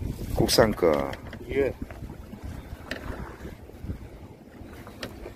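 Water laps and splashes against the side of a small boat.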